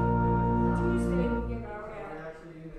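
An organ holds a loud chord, then stops.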